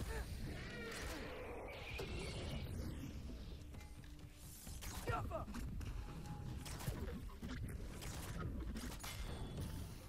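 A bow twangs as arrows are loosed in quick succession.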